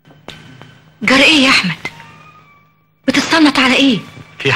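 A middle-aged woman speaks loudly and with emotion, close by.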